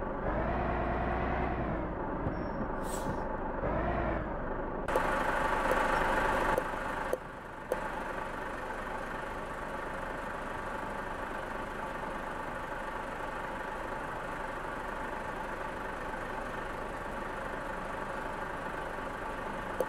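A truck engine rumbles steadily and revs up and down.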